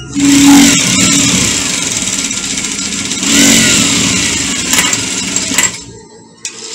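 A sewing machine runs fast with a steady whirring rattle.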